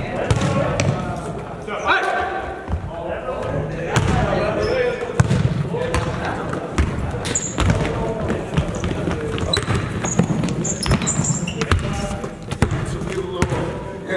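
A basketball bounces on a wooden floor in a large echoing gym.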